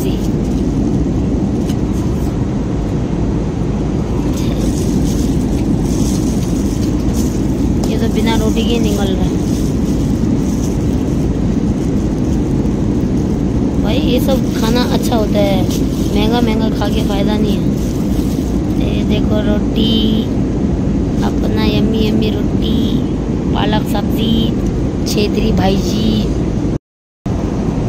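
A jet engine drones steadily in an airliner cabin.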